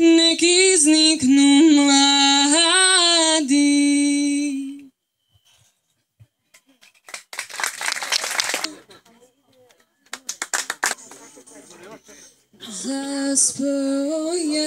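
A woman sings a sustained melody into a microphone.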